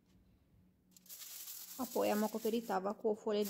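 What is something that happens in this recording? Foil crinkles and rustles.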